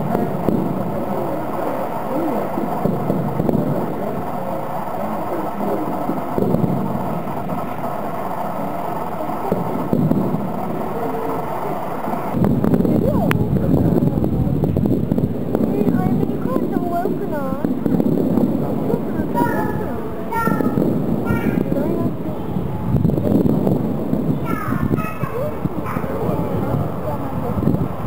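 Fireworks boom and crackle repeatedly.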